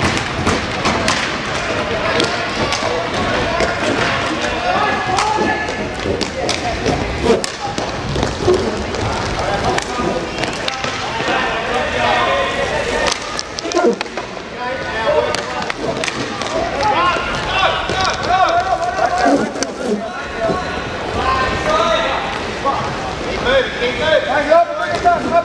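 Skate wheels roll and scrape across a hard floor.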